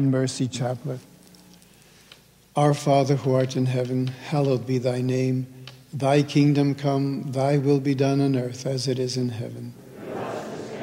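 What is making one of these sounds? An elderly man speaks calmly and closely.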